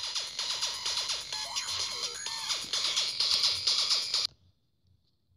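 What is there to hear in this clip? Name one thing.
Noisy electronic game sound effects play steadily, then cut off abruptly.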